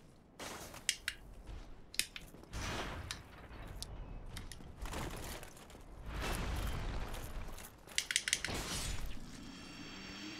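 Swords clang against armour and shields in a fight.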